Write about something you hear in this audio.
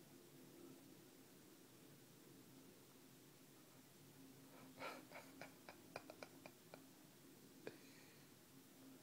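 A cat kneads a plush toy with its paws.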